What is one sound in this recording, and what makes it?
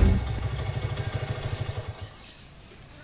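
A motorcycle engine idles with a low throb, then cuts out.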